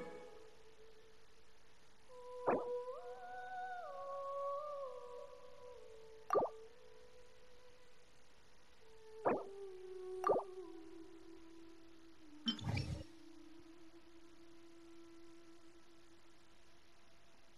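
Calm music with a sustained tone plays steadily.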